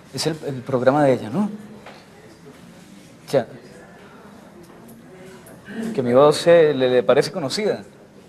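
A young man speaks into a phone with emotion, close by.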